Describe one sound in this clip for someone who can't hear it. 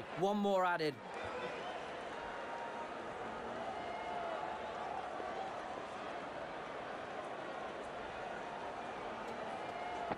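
A large stadium crowd murmurs steadily in the distance.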